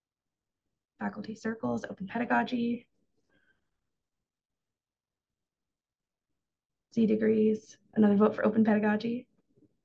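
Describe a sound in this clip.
A young woman speaks calmly through an online call microphone, in short bursts.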